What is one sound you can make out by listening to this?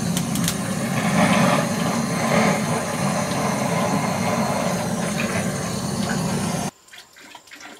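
A spray can hisses steadily.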